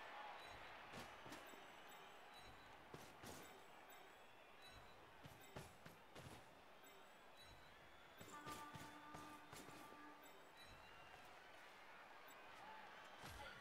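Players thud and clash as they collide on the field.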